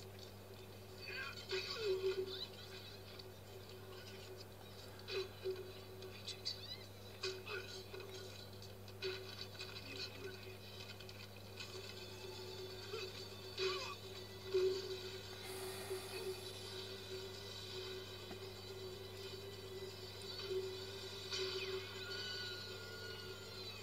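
A man speaks tensely through a small, tinny loudspeaker.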